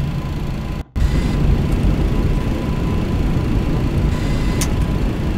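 Tyres rumble on a runway as an aircraft touches down.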